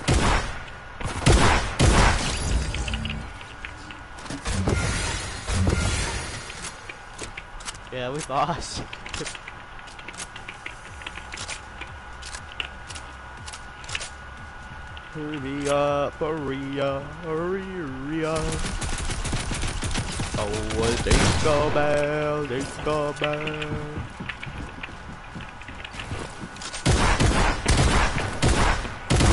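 Gunshots fire in quick, loud bursts.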